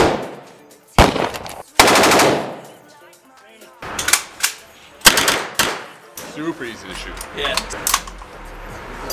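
Gunshots crack loudly in an echoing room.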